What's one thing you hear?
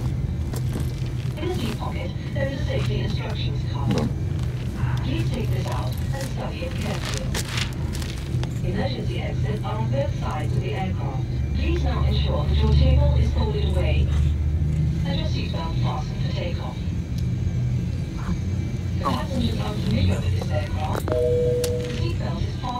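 A steady low engine drone hums throughout.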